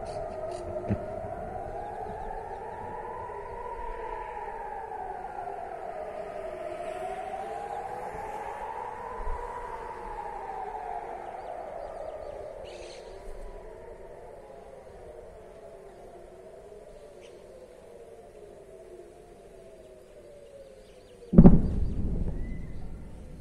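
A vehicle drives along a road with a steady low rumble.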